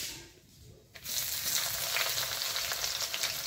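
Onions sizzle loudly in hot oil.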